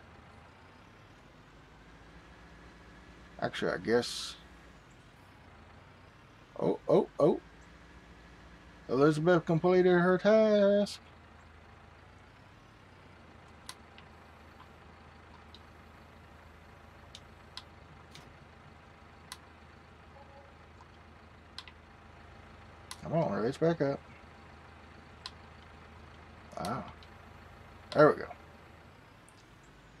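A diesel tractor engine runs.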